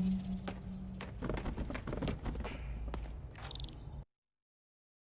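Footsteps thud on a hard concrete floor.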